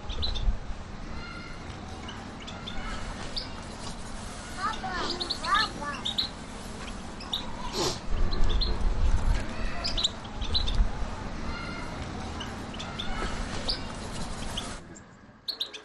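Small birds chirp and twitter from cages close by.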